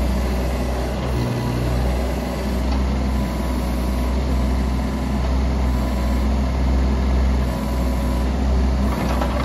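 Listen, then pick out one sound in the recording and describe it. A small excavator's diesel engine runs with a steady low hum.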